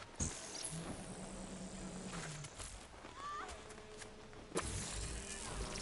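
Energy blasts crackle and whoosh in sharp bursts.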